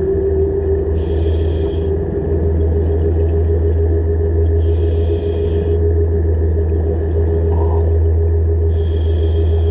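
Air bubbles burst and gurgle in short bursts as a diver breathes out underwater.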